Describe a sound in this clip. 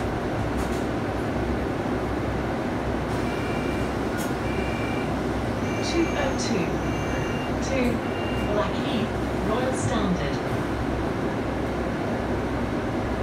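A bus engine rumbles and the cabin hums from inside a moving bus.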